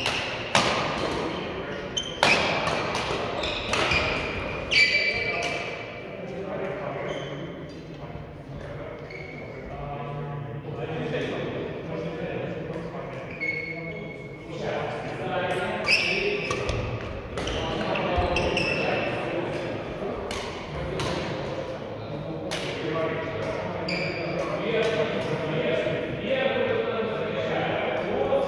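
Adult men and women talk and call out across the hall.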